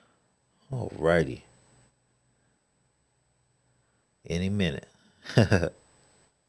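A man speaks with animation in short bursts, close to a microphone.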